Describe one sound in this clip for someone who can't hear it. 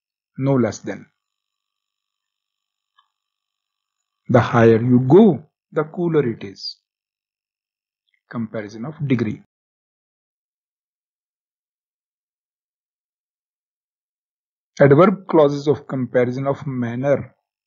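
A middle-aged man lectures calmly into a close microphone, in short phrases with pauses.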